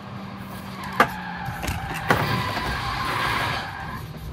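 A car scrapes and bangs against a roadside barrier.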